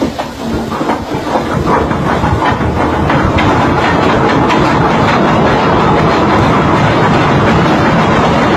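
A runaway anchor chain grinds through a windlass with a loud, rising roar.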